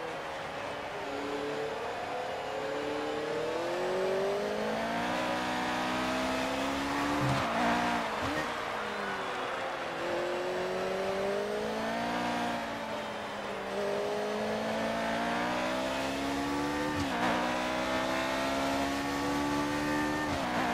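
A racing car engine screams, revving up and dropping through the gear changes.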